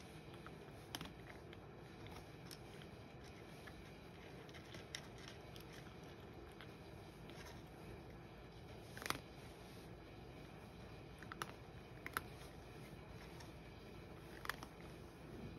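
Kibble clinks against a bowl now and then.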